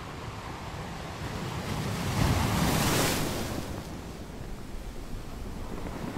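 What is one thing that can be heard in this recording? Water swirls and hisses over the rocks.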